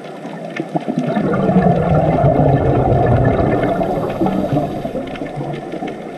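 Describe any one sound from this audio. Air bubbles from a scuba diver gurgle and rumble close by underwater.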